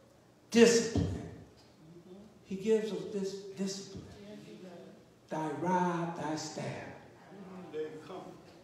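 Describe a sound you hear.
An elderly man speaks slowly and with emphasis into a microphone, heard through loudspeakers in an echoing hall.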